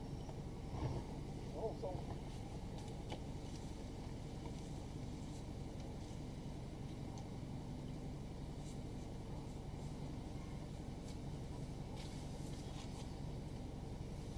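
Leafy branches rustle as they are pulled by hand.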